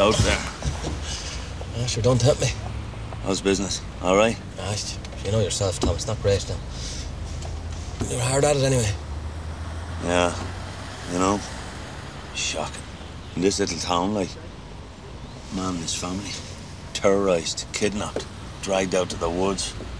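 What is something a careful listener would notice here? A younger man answers calmly from inside a car.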